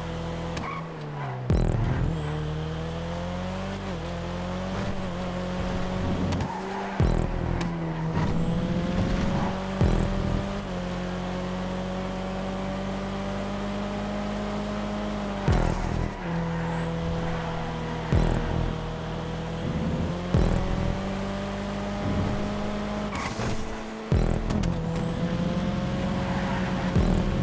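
A car engine revs hard, its pitch climbing and dropping with gear changes.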